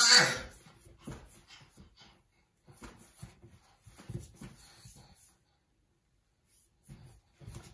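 A baby babbles and coos softly close by.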